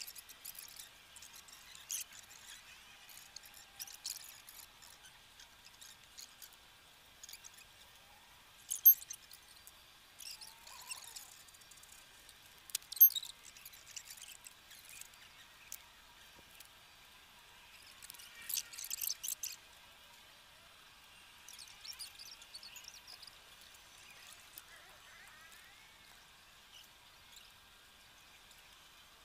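Twigs snap and leaves rustle as hands trim a small tree.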